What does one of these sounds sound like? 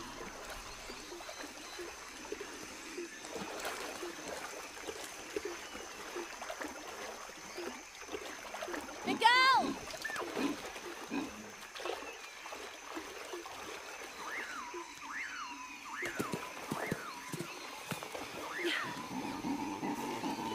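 Footsteps splash through shallow water.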